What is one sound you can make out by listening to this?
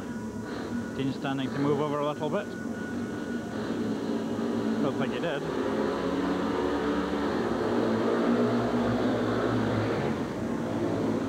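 Motorcycle engines rev loudly and roar away from a start.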